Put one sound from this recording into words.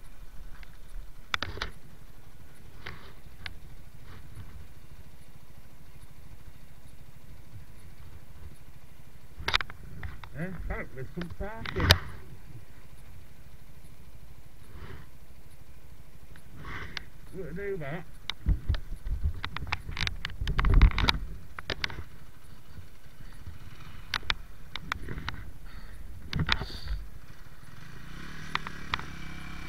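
A motorcycle engine idles with a low steady rumble.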